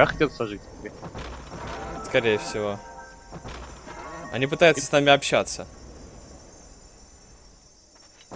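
Video game spell effects crackle and whoosh.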